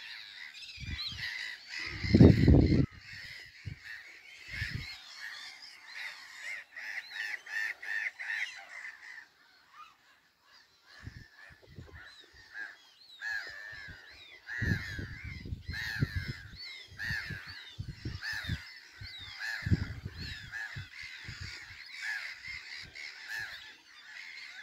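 A small bird chirps in quick, high calls.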